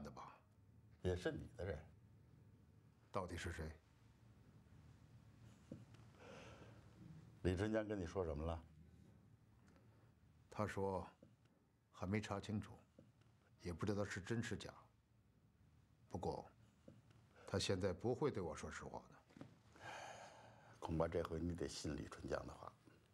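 An older man speaks calmly, close by.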